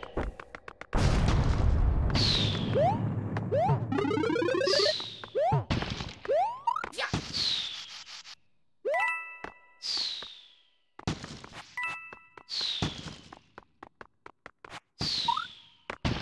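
Bright chiming video game effects ring out again and again.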